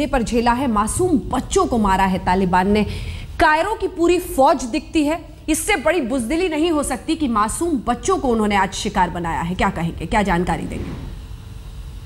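A young woman speaks quickly and with animation through a microphone.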